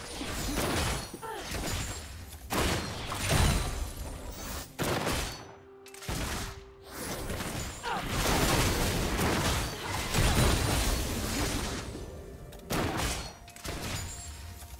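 Spell blasts and weapon hits crackle and whoosh in a busy fight.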